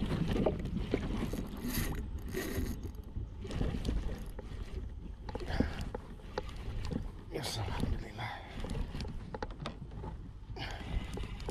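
A fishing reel clicks and whirs as its handle is wound.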